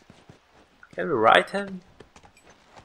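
A horse snorts and whinnies.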